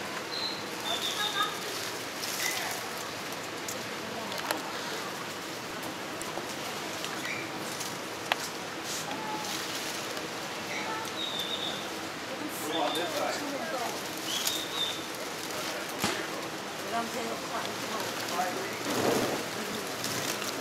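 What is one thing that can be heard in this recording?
Leaves and branches rustle as a monkey moves through them.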